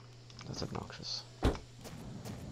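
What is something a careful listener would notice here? A truck door opens with a clunk.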